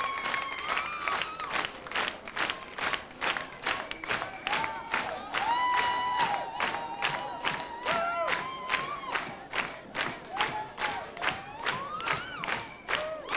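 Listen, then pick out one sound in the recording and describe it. A large crowd claps in a steady rhythm.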